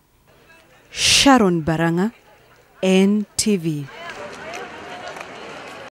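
Teenagers chatter and call out nearby outdoors.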